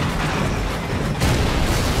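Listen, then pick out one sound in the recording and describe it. A large explosion roars and rumbles.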